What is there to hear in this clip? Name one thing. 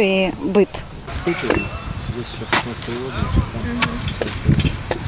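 A shovel digs into soil.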